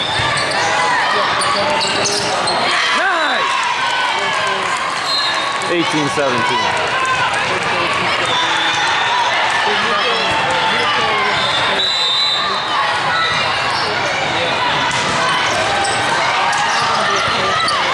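A volleyball is struck with hollow thumps.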